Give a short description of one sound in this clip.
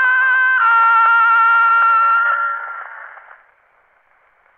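Tinny, scratchy music plays from an old cylinder phonograph, then fades away.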